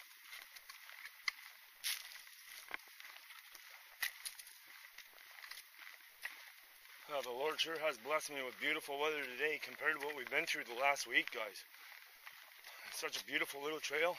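Footsteps crunch on dry leaves and a dirt trail.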